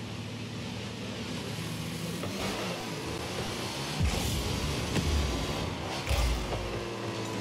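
A game car's engine hums steadily.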